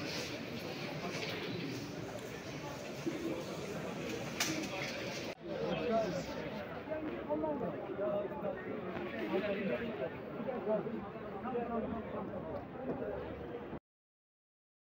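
A crowd of men and women murmurs and calls out nearby, outdoors.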